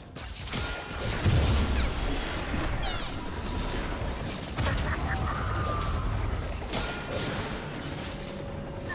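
Magic spells whoosh, crackle and zap during a fight.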